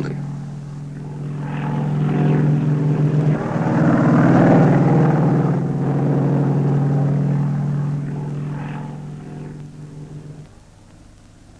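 A helicopter drones overhead, its rotor whirring, then fades.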